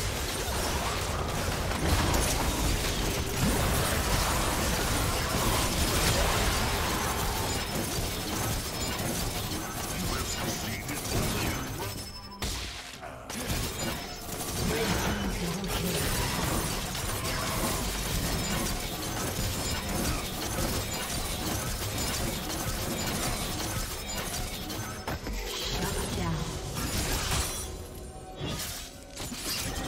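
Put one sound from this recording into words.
Game spell effects crackle and whoosh during a battle.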